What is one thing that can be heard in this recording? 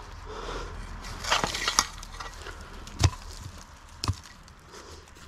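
A small shovel scrapes and digs into stony soil.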